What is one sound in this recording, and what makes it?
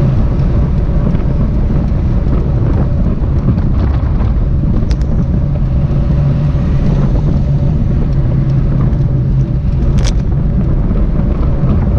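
Wind rushes loudly past, heard from close by while riding.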